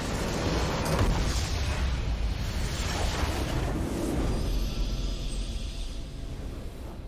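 A loud explosion booms and crackles with a deep rumble.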